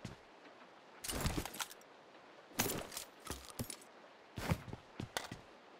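Gear rustles and clatters as items are picked up.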